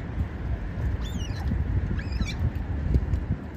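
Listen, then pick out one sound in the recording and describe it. Otters give high, sliding squeaks.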